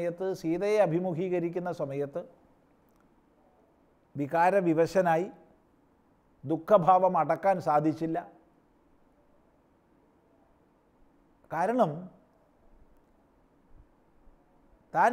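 A middle-aged man chants slowly and melodically into a close microphone, pausing between phrases.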